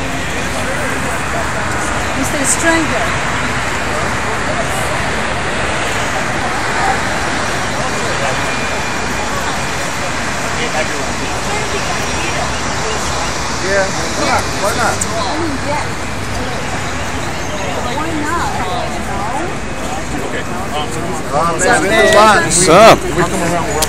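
A crowd of people chatter outdoors in the background.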